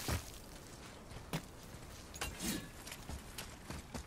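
Footsteps thud on rocky ground.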